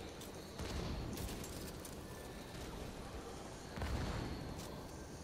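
A rifle fires loud, booming single shots.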